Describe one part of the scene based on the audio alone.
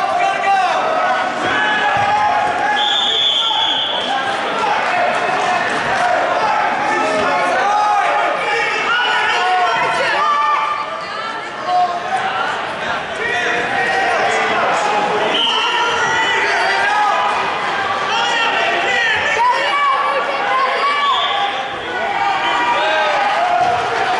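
A crowd of spectators shouts and cheers throughout a large echoing gym.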